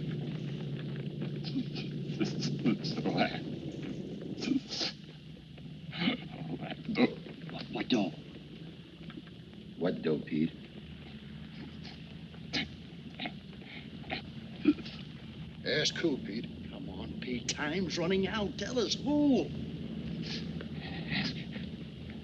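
A young man talks cheerfully and laughs close by.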